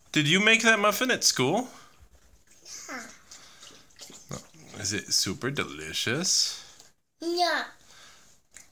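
A toddler girl talks in short babbling phrases close by.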